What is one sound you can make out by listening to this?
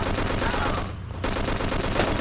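An explosion bursts close by and crackles with fire.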